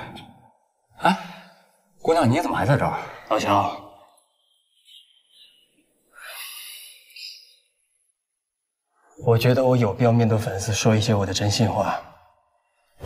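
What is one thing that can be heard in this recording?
A young man speaks calmly and seriously up close.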